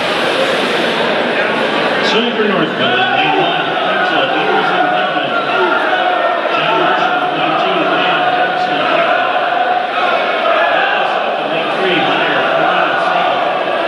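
Swimmers splash as they race.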